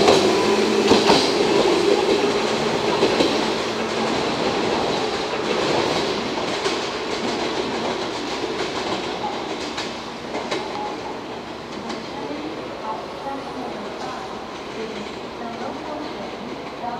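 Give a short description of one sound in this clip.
A train rumbles away along the tracks and slowly fades.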